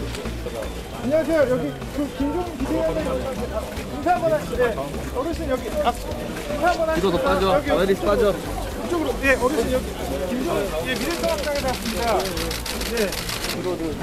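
Several men talk over one another outdoors, close by.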